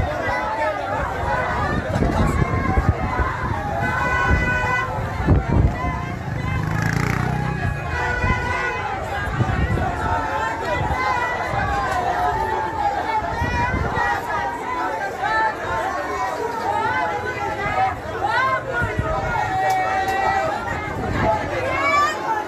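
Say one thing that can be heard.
A crowd of men and women talk and shout over one another nearby, outdoors.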